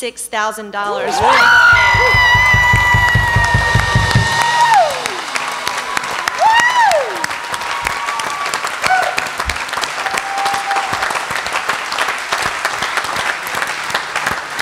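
A large audience applauds in a big hall.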